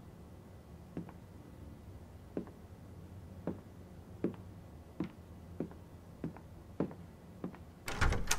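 Footsteps tap slowly across a wooden floor.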